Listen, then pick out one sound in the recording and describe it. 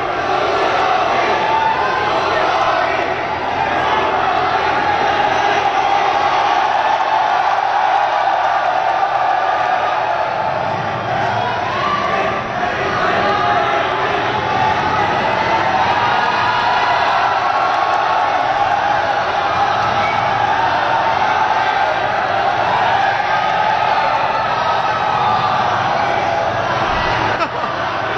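A large crowd cheers and screams loudly nearby, echoing under a roof.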